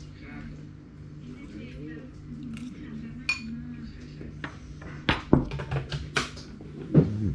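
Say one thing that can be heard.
Chopsticks clink against a bowl.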